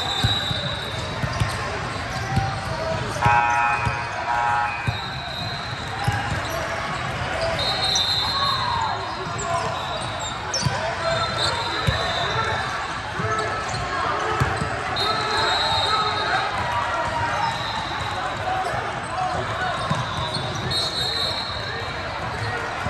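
Basketballs bounce on a wooden floor.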